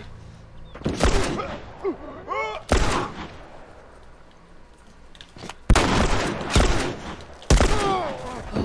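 A pistol fires several loud, sharp shots.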